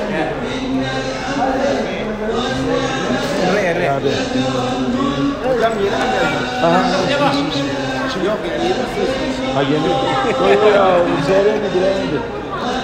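A crowd of men and women talks and chatters nearby in an echoing hall.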